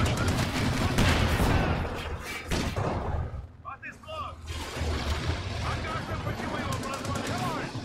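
Cannon shots boom and explosions burst in a battle.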